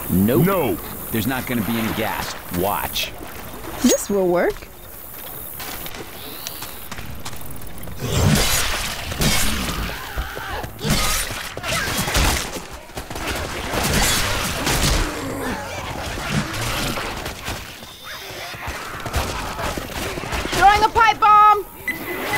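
A pistol fires sharply.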